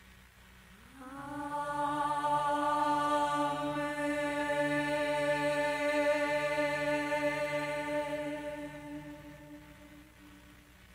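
A woman sings a long, sustained operatic melody into a microphone.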